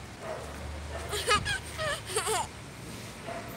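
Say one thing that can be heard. A young child laughs happily close by.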